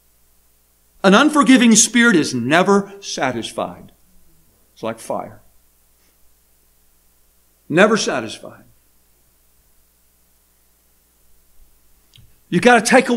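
An older man speaks with emphasis into a microphone, in bursts with pauses.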